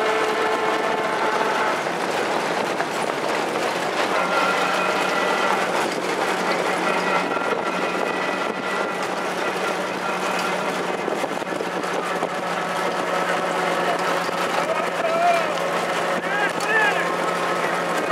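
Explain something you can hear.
Trotting horses' hooves pound on a dirt track.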